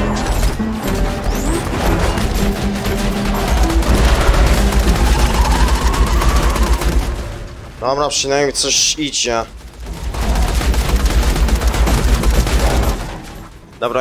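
Guns fire in rapid bursts with loud bangs.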